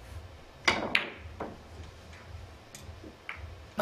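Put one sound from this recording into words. Billiard balls click against each other.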